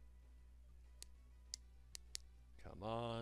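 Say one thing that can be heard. Short electronic game beeps play.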